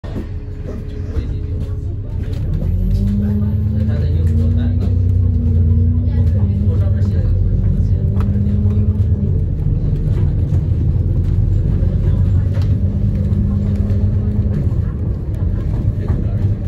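A bus engine rumbles and whines steadily as the bus drives along.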